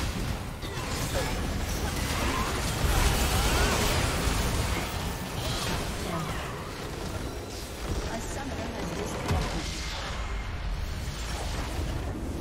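Game spells and attacks crash, whoosh and boom in a busy battle.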